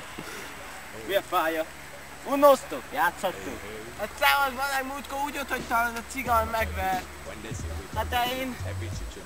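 Young men talk and laugh nearby outdoors.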